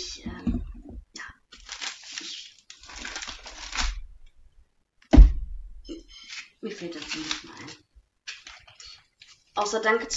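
Paper rustles and crinkles as a woman handles it.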